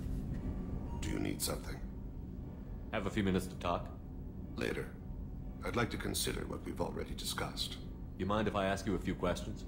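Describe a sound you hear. A man speaks calmly in a low, close voice.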